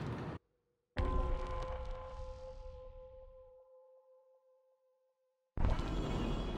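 A menu chime rings and slowly fades.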